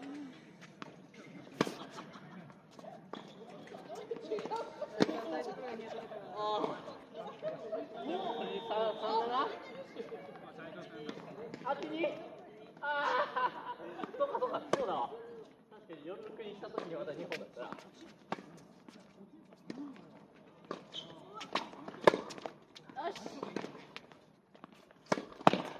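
Sneakers scuff and squeak on the hard court.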